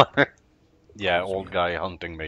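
A man answers quietly.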